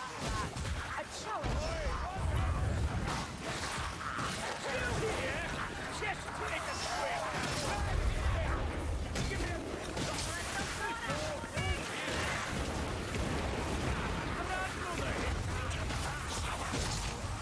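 Blades clash and hack in a frantic melee.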